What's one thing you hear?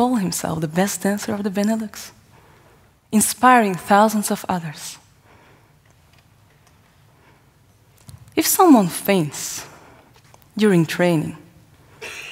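A young woman speaks calmly and expressively through a microphone in a large hall.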